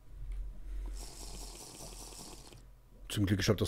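A potion is gulped down.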